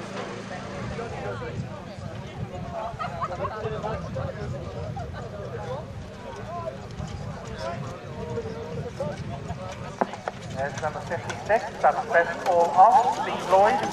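Hooves thud on grass as a horse trots.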